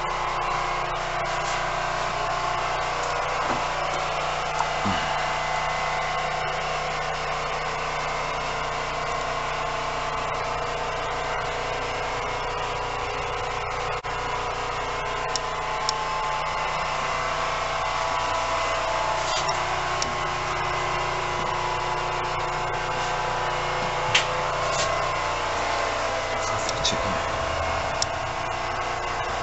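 A train's engine hums steadily from beneath the carriage.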